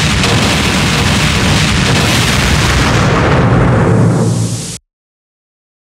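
A huge energy blast roars and rumbles, then fades away.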